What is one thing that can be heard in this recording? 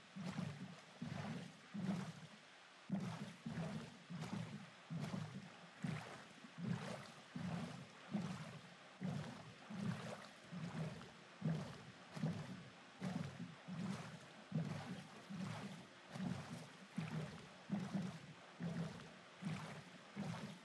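Oars paddle through water in a steady rhythm.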